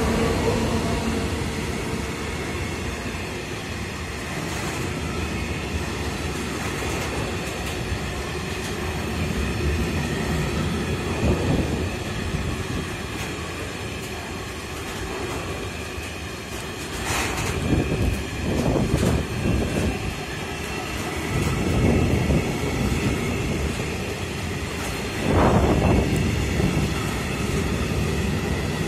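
A long freight train rumbles steadily past close by, wheels clattering over the rail joints.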